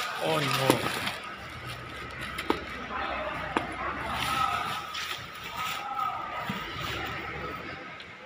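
Plastic wrapping rustles as items are handled.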